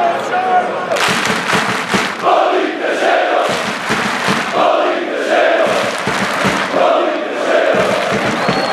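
Fans in a stadium crowd clap their hands in rhythm.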